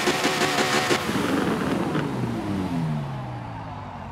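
A racing car engine winds down with falling pitch.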